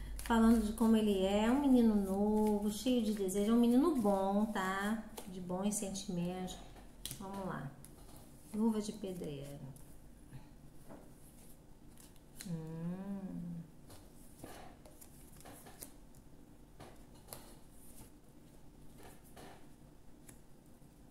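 Playing cards rustle and slide as they are handled.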